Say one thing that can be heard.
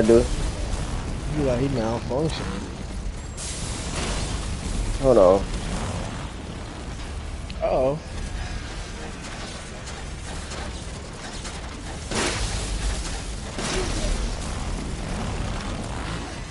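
A burning creature growls and roars.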